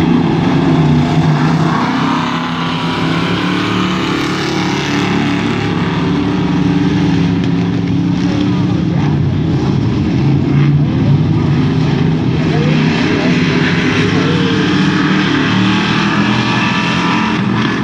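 Race car engines roar loudly around a dirt track, revving up and down as they pass.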